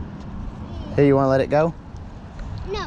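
A child calls out from a short distance.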